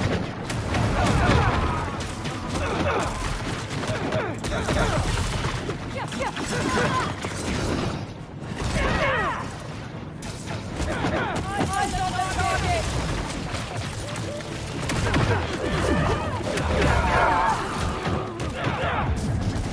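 Punches and blows thud and crash in a fight.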